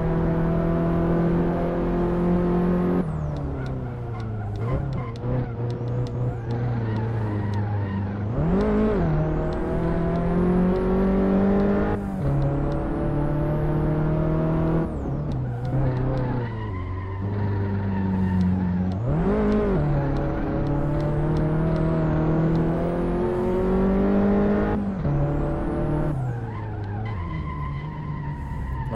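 A small car engine revs up and down, climbing in pitch and dropping with each gear change.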